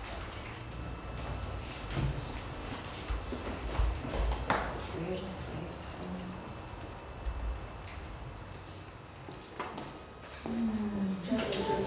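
Fingers tap on a keyboard.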